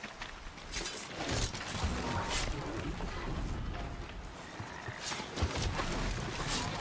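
Heavy blows strike metal with sharp bangs.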